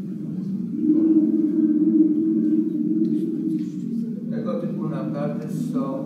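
An elderly man speaks calmly through a microphone in a large room.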